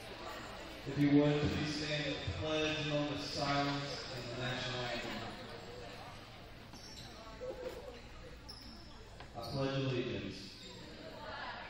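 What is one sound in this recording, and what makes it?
A man announces over a loudspeaker in a large echoing gym.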